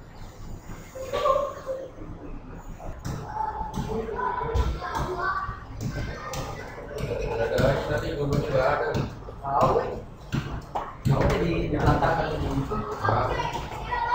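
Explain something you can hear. Teenage boys talk and call out to each other close by, echoing in a stairwell.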